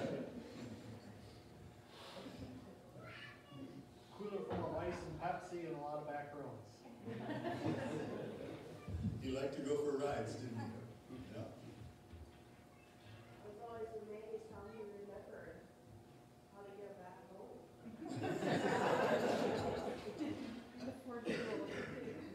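A man speaks calmly through a microphone in a large, echoing hall.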